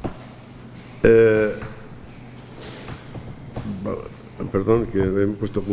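A middle-aged man speaks calmly into a microphone, with short pauses.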